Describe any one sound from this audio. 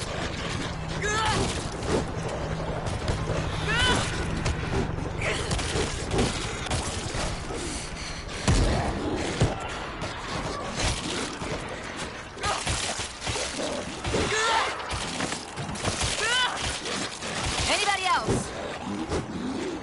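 Zombies snarl and shriek nearby.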